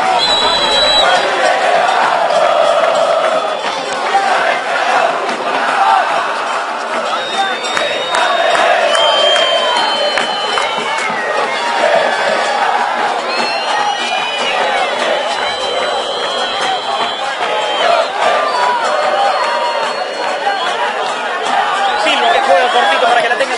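A large crowd chants and sings loudly outdoors.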